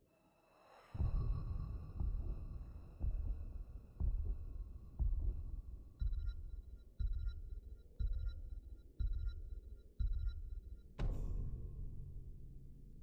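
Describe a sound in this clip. A deep countdown beat booms once every second.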